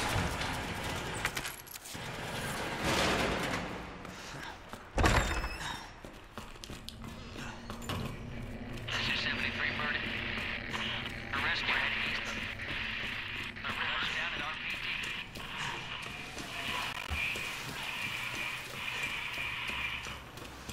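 Footsteps walk slowly over a hard floor.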